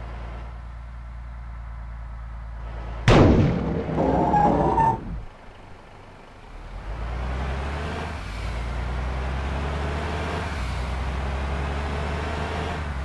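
A truck's diesel engine rumbles steadily and revs as it speeds up.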